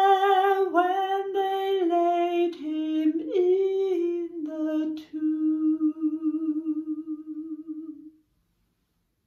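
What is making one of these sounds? A middle-aged woman sings a slow hymn alone, close to the microphone, holding the last note long.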